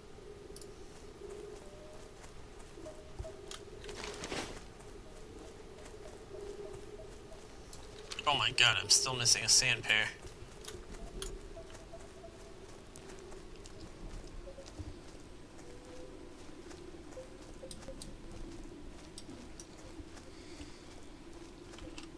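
Footsteps patter lightly on grass.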